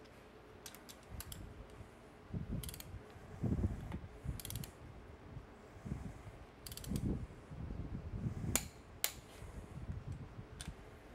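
A ratchet wrench clicks rapidly while turning a bolt.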